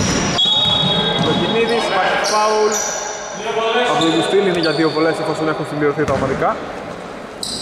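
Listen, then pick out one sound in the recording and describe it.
Men call out to each other across an echoing gym.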